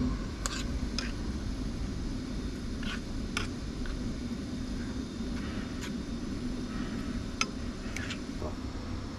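A fork scrapes and taps against a frying pan.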